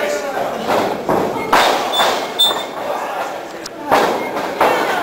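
Bodies thud heavily against a wrestling ring mat.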